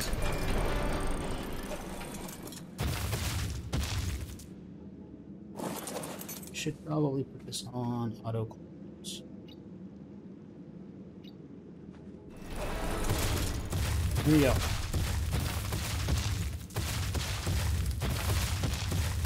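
A large creature's heavy footsteps thud.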